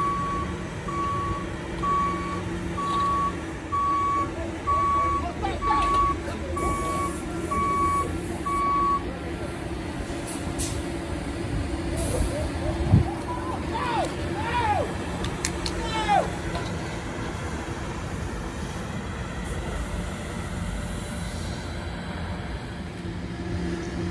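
A bus hums steadily nearby.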